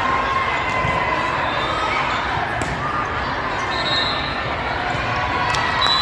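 Shoes squeak on a gym floor in a large echoing hall.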